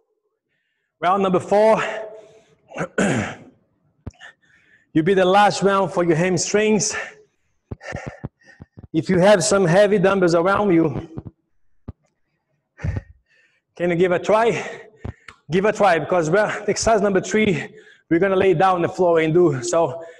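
A man talks calmly and clearly into a clip-on microphone, close by.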